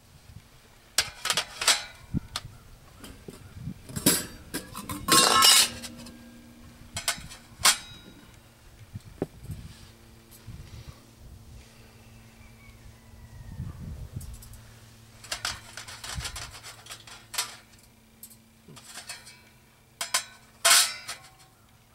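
Metal pans clank and scrape against each other.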